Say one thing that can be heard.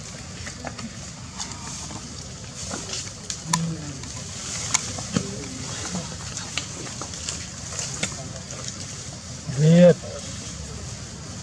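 Leaves rustle as a monkey handles them.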